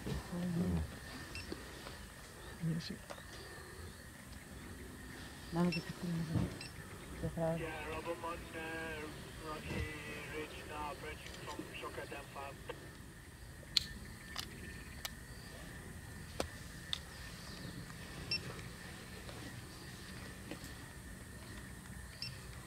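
A leopard chews and tears at meat with wet crunching sounds.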